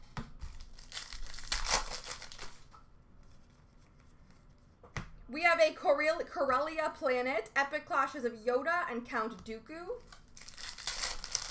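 Foil trading card packs crinkle in a hand.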